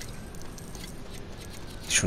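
Toy bricks clatter as a sandcastle breaks apart.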